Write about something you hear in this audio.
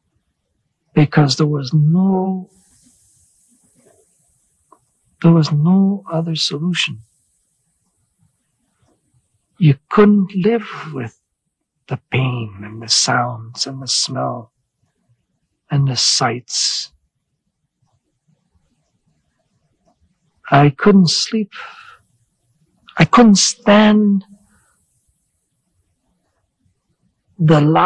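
A middle-aged man speaks slowly and haltingly into a close microphone, with long pauses.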